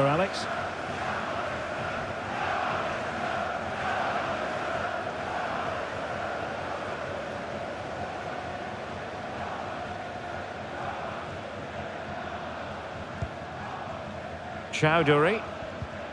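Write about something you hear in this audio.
A large stadium crowd chants and cheers steadily.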